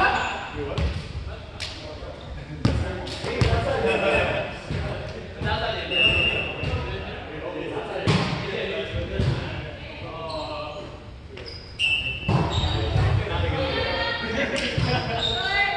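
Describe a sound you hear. A volleyball thumps off players' hands and arms.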